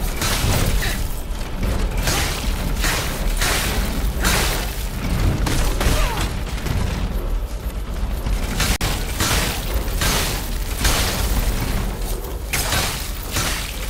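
Heavy blows land with loud crashes.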